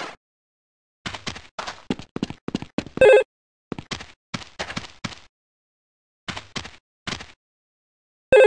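Footsteps thud quickly on hard ground.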